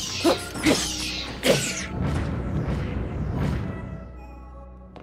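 A sword swishes and strikes in a fight.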